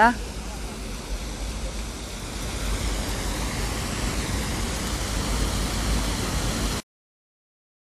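Fountain water splashes steadily outdoors.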